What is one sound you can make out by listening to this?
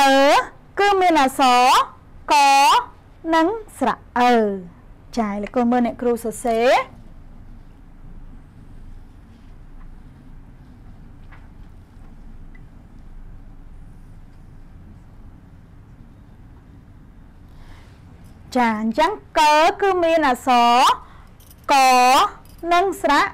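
A young woman speaks clearly and with animation into a microphone.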